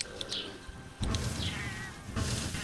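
A fire flares up with a loud whoosh.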